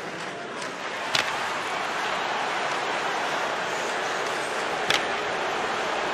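A hockey stick slaps a puck with a sharp crack.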